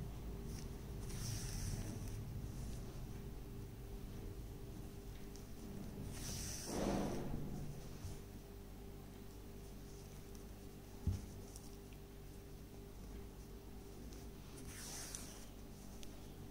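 Yarn rustles softly as it is pulled through knitted fabric.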